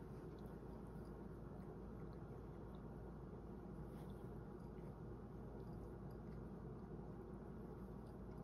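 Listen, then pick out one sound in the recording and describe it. A cat licks and grooms its paw with soft wet lapping sounds close by.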